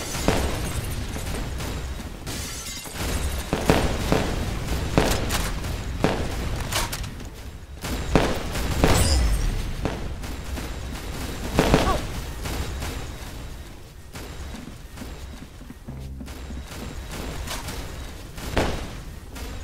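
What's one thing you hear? A launcher fires with a sharp thump.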